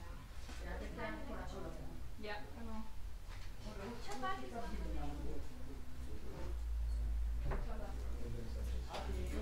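An elderly woman speaks calmly.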